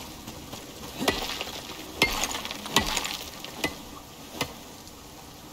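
A pickaxe strikes rock with sharp, ringing knocks.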